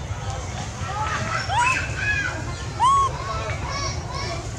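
Young monkeys squeal in short, high, rising cries close by.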